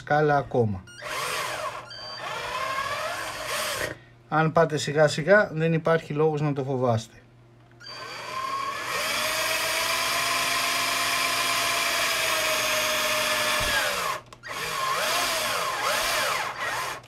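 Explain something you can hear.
A cordless drill whirs in bursts as it drills into plastic.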